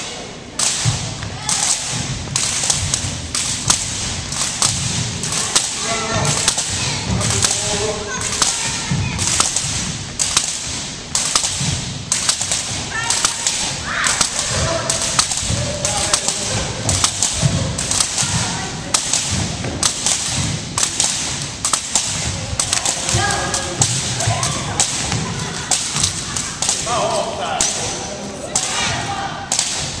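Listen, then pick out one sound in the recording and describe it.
Jump ropes slap rhythmically on a hard floor in a large echoing hall.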